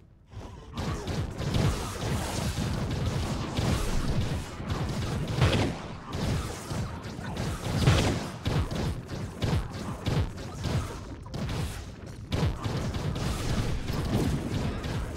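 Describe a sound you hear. Game combat sounds of rapid hits and fiery blasts ring out.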